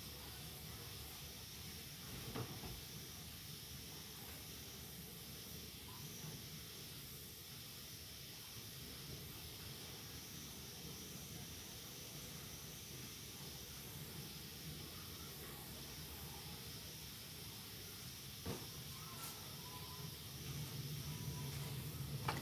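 Water sloshes and churns in a washing machine tub.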